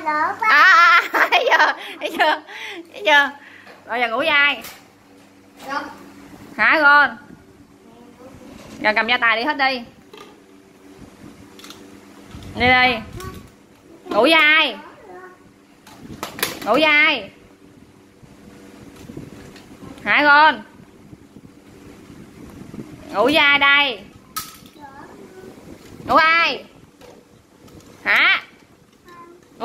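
A young child talks and calls out in short bursts, close by.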